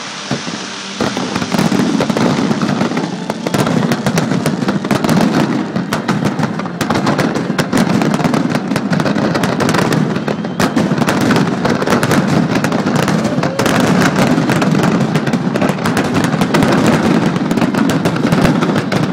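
Fireworks crackle densely and rapidly.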